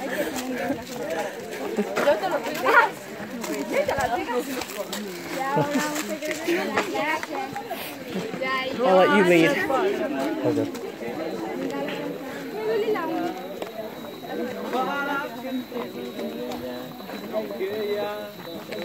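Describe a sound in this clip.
Footsteps crunch on a dirt path.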